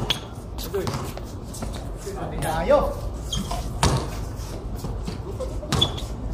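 Sneakers scuff and tap on concrete.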